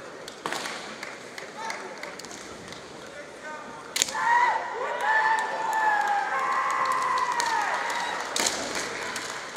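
Bamboo swords strike and clatter against each other.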